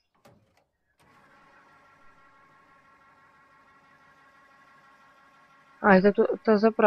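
A fuel pump hums steadily while fuel flows, then stops.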